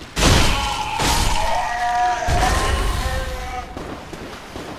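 A huge creature lets out a long, wailing shriek that fades.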